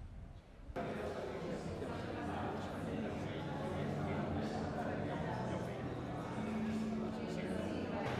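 An elderly man talks calmly with another man nearby.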